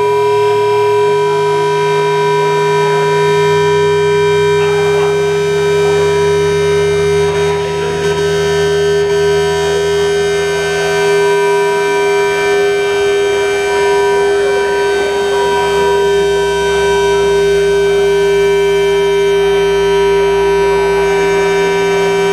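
Electronic music with steady droning tones plays loudly through speakers.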